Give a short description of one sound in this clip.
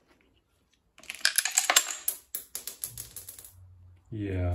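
Metal parts clink and scrape as a clutch plate is pulled off.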